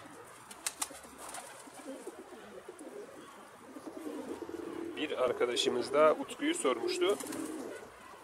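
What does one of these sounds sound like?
Pigeons flap their wings.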